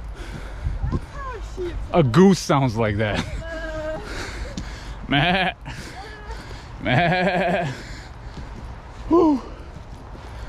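A man talks and laughs with animation close by.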